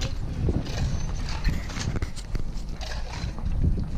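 Shovels scrape and clink on stony ground.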